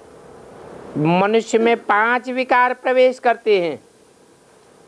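An elderly man reads aloud slowly and clearly into a microphone.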